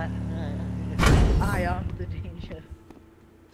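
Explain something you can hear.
A car crashes with a loud thud and tumbles over.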